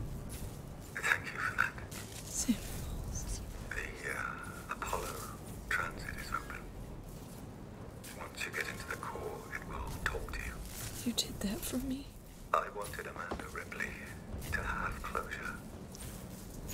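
A young woman talks calmly and close to a microphone.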